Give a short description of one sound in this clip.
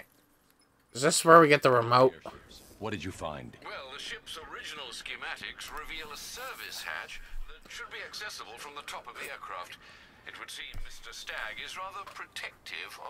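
A man speaks calmly through a radio.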